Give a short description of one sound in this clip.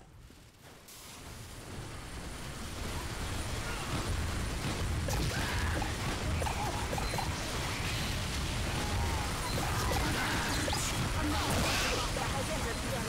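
Gunfire and explosions rattle in a fast, chaotic game battle.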